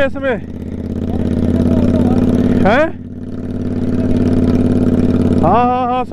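A motorcycle engine revs sharply and then drops, several times.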